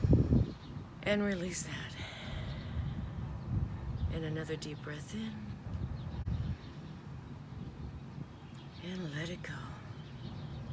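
A woman speaks softly and calmly close by.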